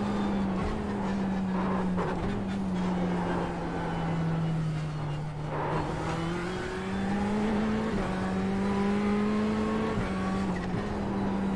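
A racing car engine roars steadily, its pitch rising and dropping through gear changes.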